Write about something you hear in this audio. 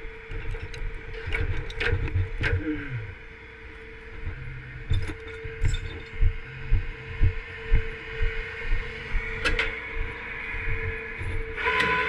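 Metal clanks and rattles on a truck bed.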